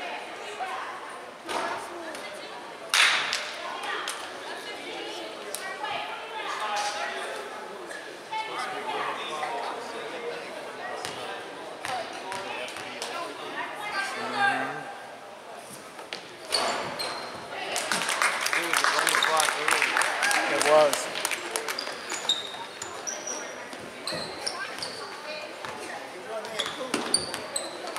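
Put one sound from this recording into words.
A crowd of spectators chatters and calls out in an echoing gym.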